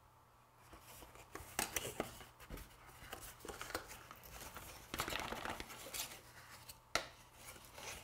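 A cardboard box flap clicks and taps as it opens.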